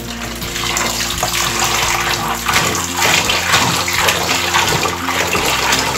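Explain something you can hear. Tap water runs and splashes into a bowl.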